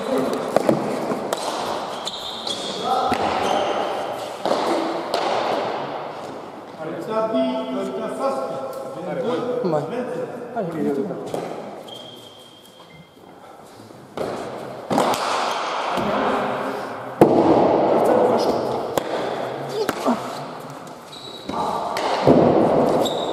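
A ball smacks hard against a wall and echoes through a large hall.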